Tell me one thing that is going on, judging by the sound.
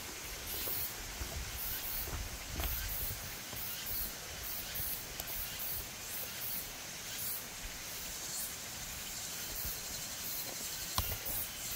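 Twigs and leaves rustle as a man works with his hands on the forest floor.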